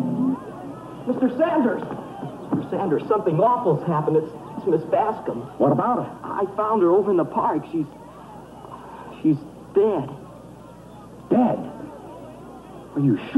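A teenage boy speaks and answers.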